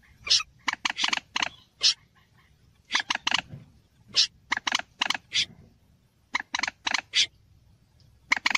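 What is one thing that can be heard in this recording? A waterbird gives loud, sharp, repeated calls in quick bursts with short pauses between them.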